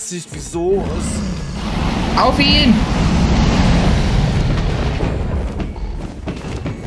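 A dragon growls with a deep rumbling roar.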